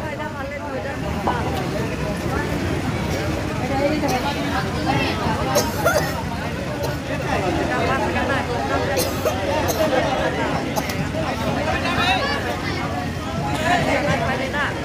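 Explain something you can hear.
Dishes clink on a table.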